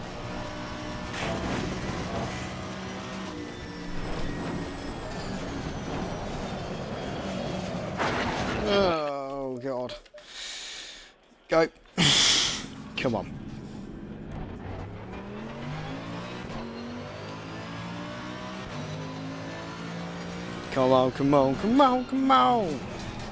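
A racing car engine roars, rising and falling in pitch as it shifts gears.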